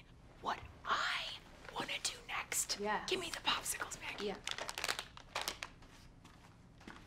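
A woman shouts with agitation.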